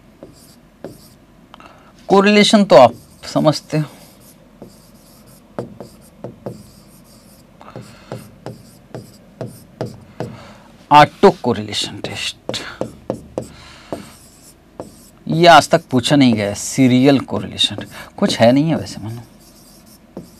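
A marker squeaks and taps while writing on a board.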